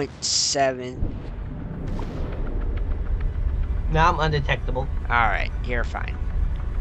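A deep, steady underwater rumble drones.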